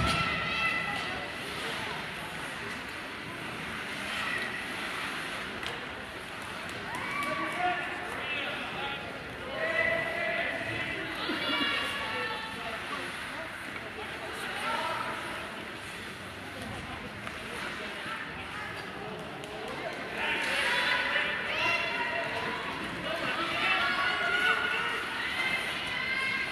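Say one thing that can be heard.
Skates scrape and swish across the ice.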